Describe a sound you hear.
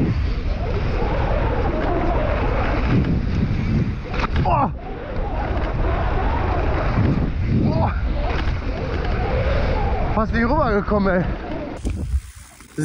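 Wind rumbles loudly against a microphone.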